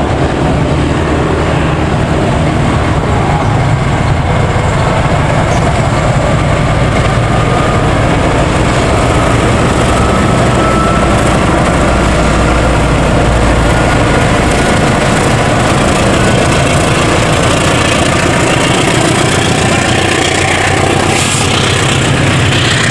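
A diesel locomotive engine rumbles loudly as it passes close by.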